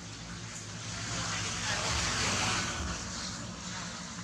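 Dry leaves rustle under moving monkeys.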